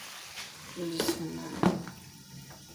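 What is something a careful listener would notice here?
A glass lid clinks onto a pan.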